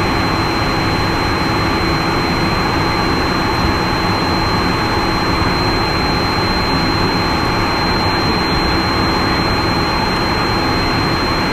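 A steady loud roar of aircraft engines and rushing air fills the cockpit.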